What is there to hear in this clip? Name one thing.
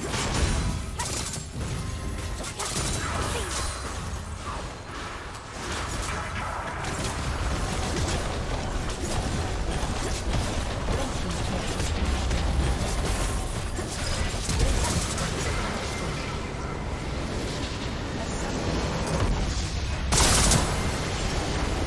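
Video game spell effects crackle, whoosh and burst in a busy fight.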